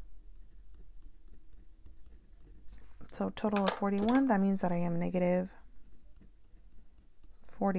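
A pen scratches on paper as someone writes.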